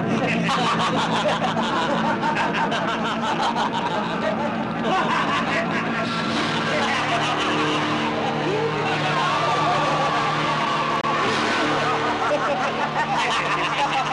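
Several men laugh loudly and mockingly nearby.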